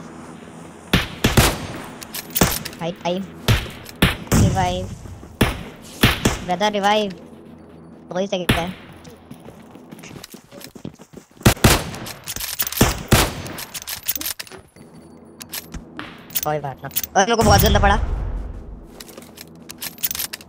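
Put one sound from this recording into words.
Rifle shots crack loudly at intervals.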